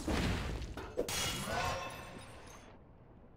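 A bright magical chime shimmers and fades.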